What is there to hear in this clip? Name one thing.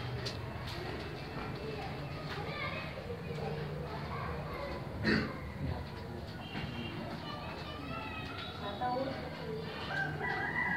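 Several young people chatter in a room.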